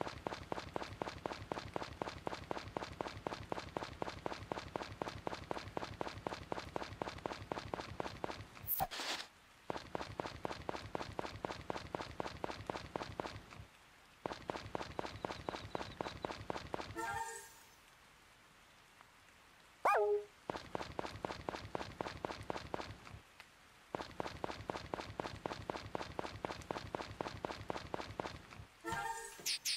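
Footsteps patter quickly and steadily on the ground.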